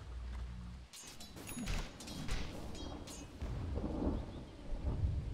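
Magic spells zap and clash in a fantasy battle.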